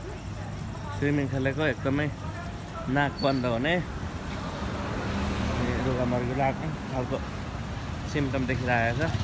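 A young man talks casually nearby.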